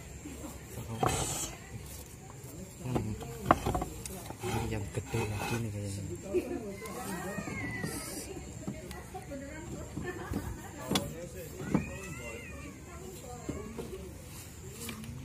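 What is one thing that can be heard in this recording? Clay roof tiles clink and scrape as they are lifted and moved by hand.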